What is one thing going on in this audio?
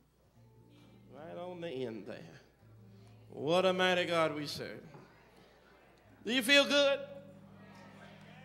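A man speaks forcefully into a microphone, heard through loudspeakers.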